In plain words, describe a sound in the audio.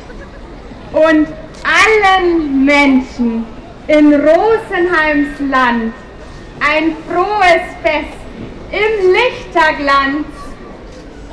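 A woman sings into a microphone over loudspeakers, outdoors.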